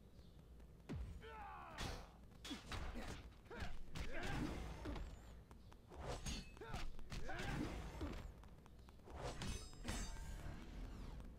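Punches and blows land with heavy thuds and cracks.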